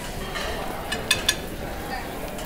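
Metal serving utensils clink against dishes.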